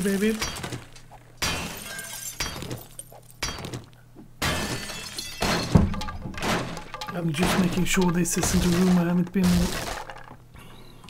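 An axe strikes wood repeatedly, splintering boards.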